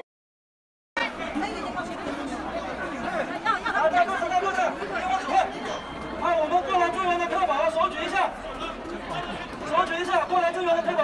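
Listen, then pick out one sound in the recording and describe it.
A large crowd of men and women shouts and clamours outdoors.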